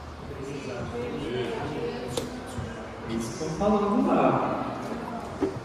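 A small band with saxophones and a violin plays a tune.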